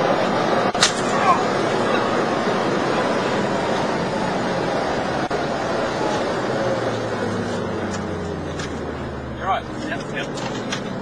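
A car slows down with its engine winding down.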